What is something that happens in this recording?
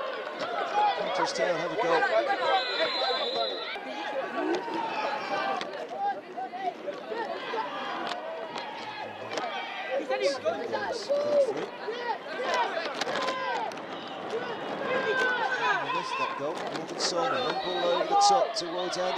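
Football players shout and call to each other outdoors.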